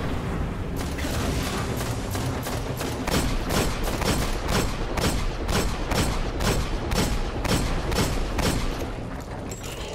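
Rapid gunshots fire over and over in quick bursts.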